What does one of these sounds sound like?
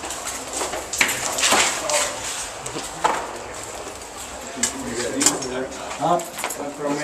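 Young men talk loudly and shout nearby.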